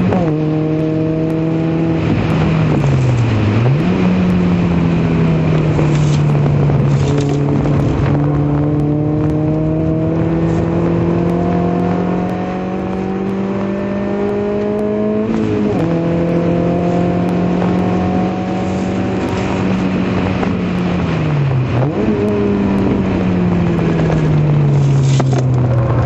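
A racing car engine roars loudly, revving up and dropping as gears change.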